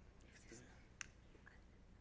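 A microphone knocks as it is adjusted.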